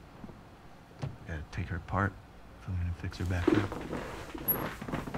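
A young man explains calmly.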